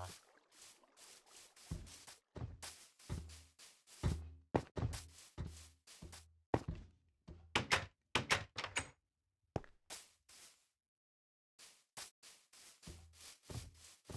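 Footsteps tread steadily on grass and dirt.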